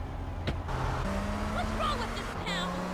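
A car engine revs and pulls away.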